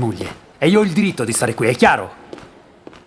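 A man speaks forcefully up close.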